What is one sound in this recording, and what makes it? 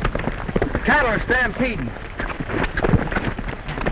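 Hooves thud on dry ground.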